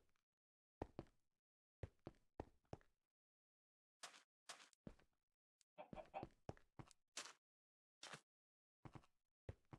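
Stone blocks are placed with short, dull knocks.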